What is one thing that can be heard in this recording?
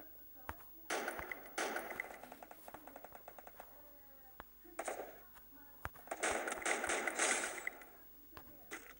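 A rifle fires loud shots that echo.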